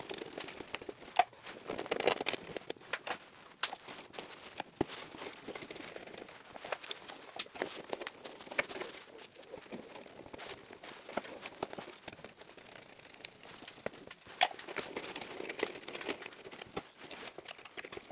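Wires rustle and scrape as hands handle them.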